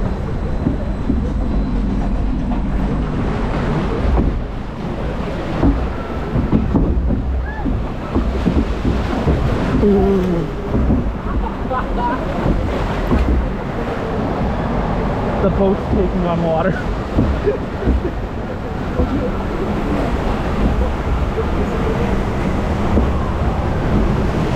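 Water rushes and churns loudly along a channel throughout.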